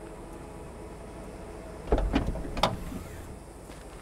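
A car trunk lid opens with a thump.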